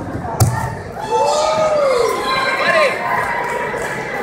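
Men in a crowd shout loudly.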